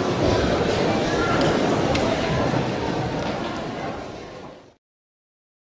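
A piano plays softly in an echoing hall.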